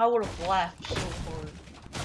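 A gunshot cracks nearby.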